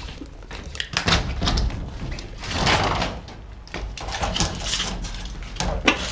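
A metal window frame scrapes and rattles as it slides open close by.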